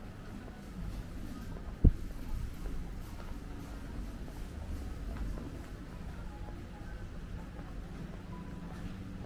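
A quiet street hums with distant traffic outdoors.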